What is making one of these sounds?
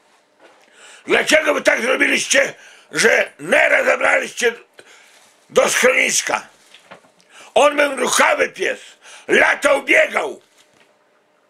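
A middle-aged man talks loudly and with animation, close by.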